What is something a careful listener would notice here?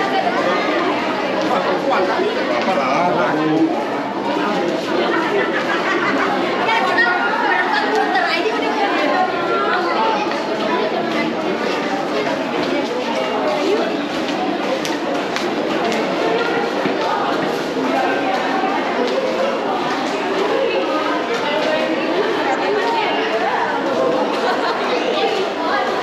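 A crowd of men and women chatters all around in a large echoing hall.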